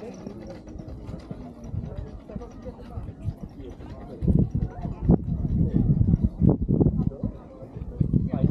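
Footsteps tread on a paved walkway.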